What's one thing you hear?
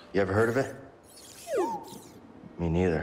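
A small robot chirps with a sliding electronic whistle.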